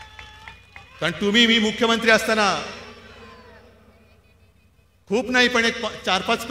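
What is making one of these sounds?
A man speaks forcefully through loudspeakers in a wide open space.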